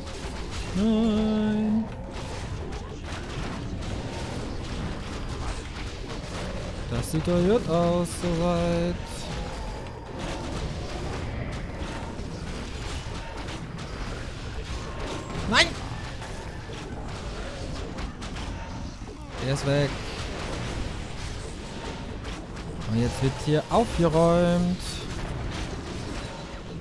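Weapons clash and spells burst in a battle game.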